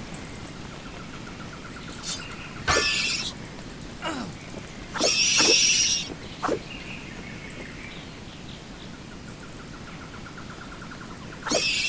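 Bat-like creatures screech and flap.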